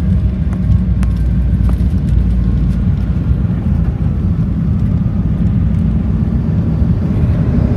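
Airplane wheels rumble over the runway.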